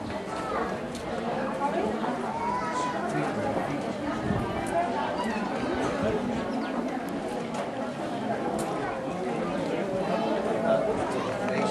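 A crowd of men and women talk and chatter nearby, outdoors.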